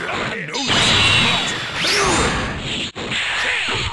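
An energy blast crackles and roars.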